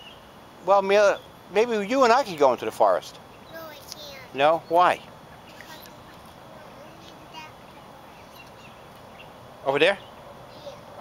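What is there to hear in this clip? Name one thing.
A young girl talks and sings out in a high, lively voice close by.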